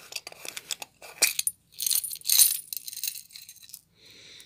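Small beads rattle and clatter onto a hard surface.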